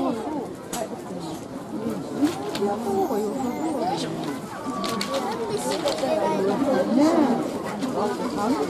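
A panda chews and crunches bamboo close by.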